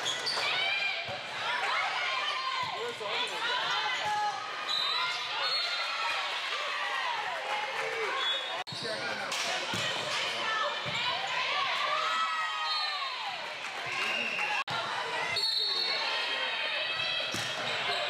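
A volleyball thumps against hands.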